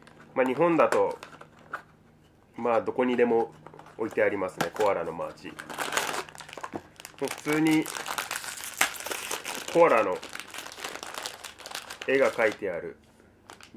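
A plastic snack wrapper crinkles in a man's hands.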